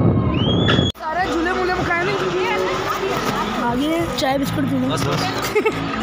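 A young boy talks excitedly close by.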